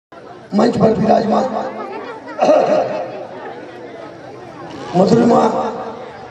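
An elderly man speaks with animation through a microphone and loudspeakers.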